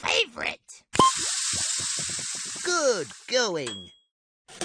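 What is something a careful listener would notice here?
Liquid pours with a gushing, fizzing rush into a cup.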